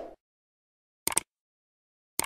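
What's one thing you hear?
A mouse clicks once.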